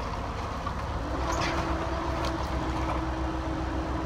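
Debris clatters and crashes as an excavator drops a wall.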